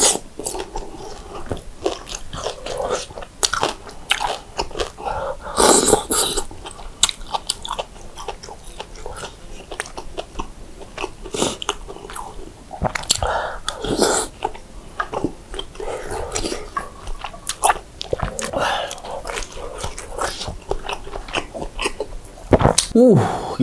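A young man chews and slurps food close to a microphone.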